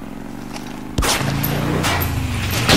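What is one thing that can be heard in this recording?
A motorcycle crashes and scrapes along the road.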